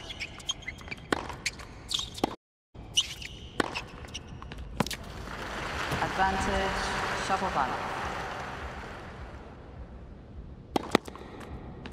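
A tennis racket strikes a ball with sharp pops.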